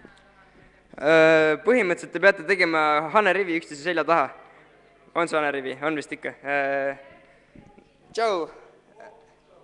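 A boy sings loudly into a microphone through a loudspeaker in an echoing hall.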